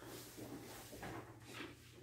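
Book pages flutter as they flip.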